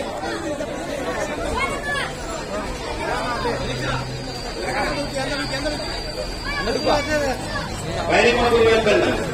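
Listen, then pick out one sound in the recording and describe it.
A crowd of men talk and call out loudly nearby, outdoors.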